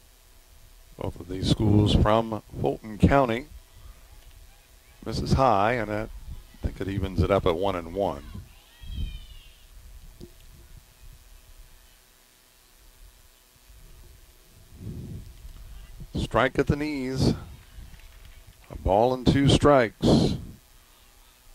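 Young women chant and cheer loudly outdoors.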